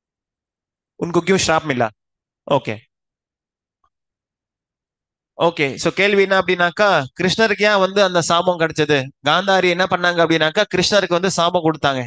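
A man speaks calmly into a headset microphone, heard through an online call.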